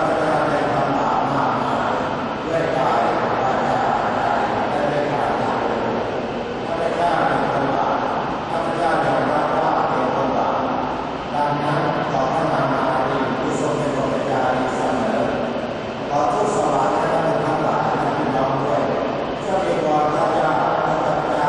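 A large crowd sings together in phrases, echoing through a large hall.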